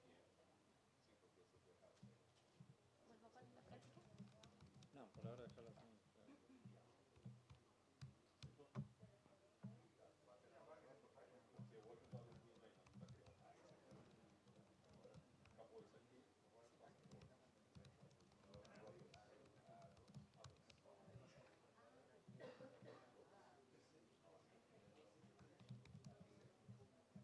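Fingers tap on a laptop keyboard and touchpad.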